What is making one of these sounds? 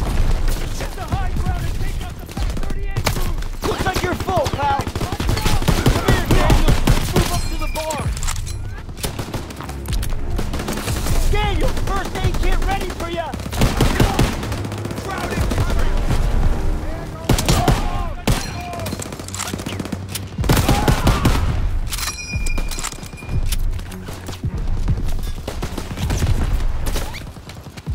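Rifle shots ring out in bursts.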